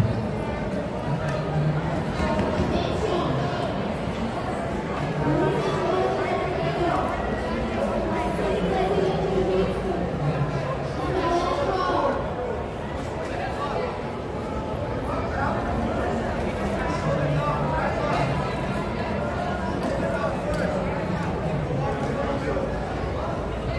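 Spectators shout encouragement loudly.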